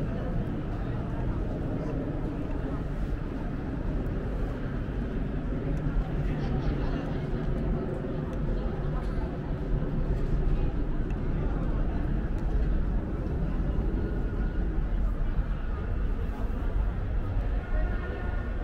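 Footsteps tread steadily on paving outdoors.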